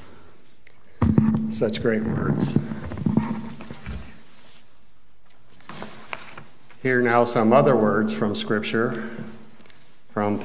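An elderly man speaks calmly through a microphone in a large room.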